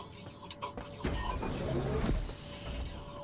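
A heavy sliding door hisses open.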